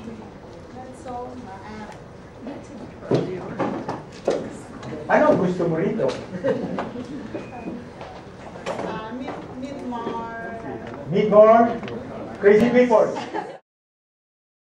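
A middle-aged woman speaks with animation nearby.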